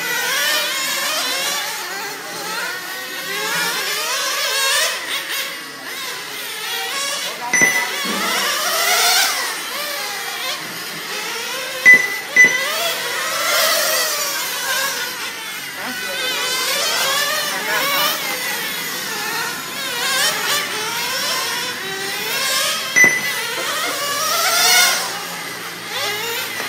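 Small nitro-engined radio-controlled cars whine at high revs as they race around a track.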